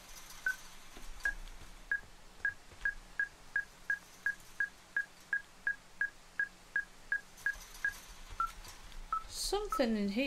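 An electronic detector beeps in quick, steady pips that speed up and then slow down.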